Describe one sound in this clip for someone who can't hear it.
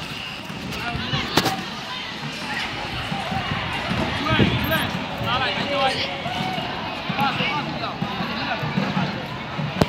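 Children shout and call out outdoors across an open field.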